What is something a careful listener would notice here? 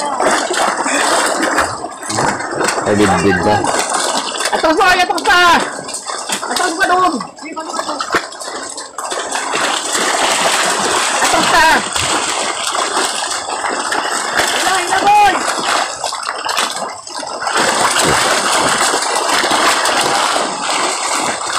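Water splashes and churns as fish thrash in a net.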